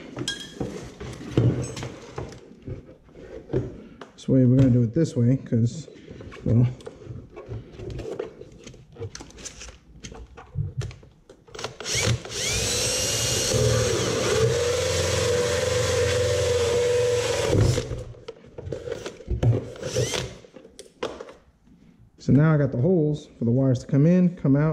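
Metal parts knock and rattle as they are handled.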